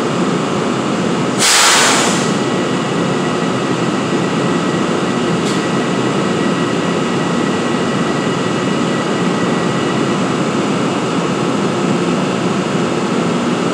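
A diesel locomotive idles with a steady, droning hum in a large echoing station.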